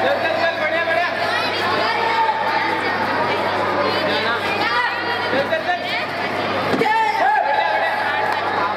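Young fighters let out sharp shouts as they strike.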